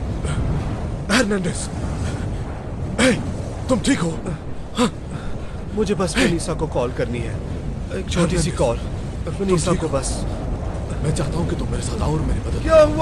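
A man pants and groans heavily close by.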